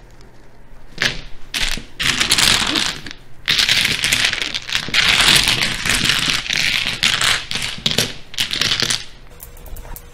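Tiles clatter and rattle as they are shuffled across a table.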